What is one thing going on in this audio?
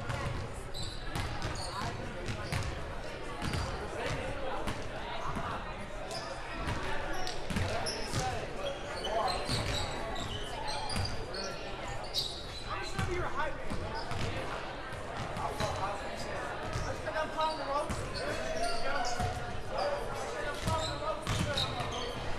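Players call out to each other across the hall.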